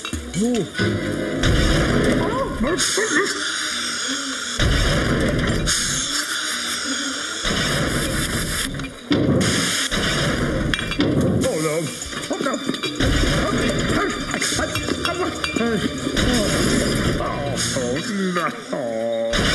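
A bottling machine clanks and whirs steadily.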